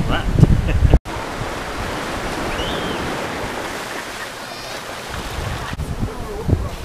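Small waves wash gently onto sand.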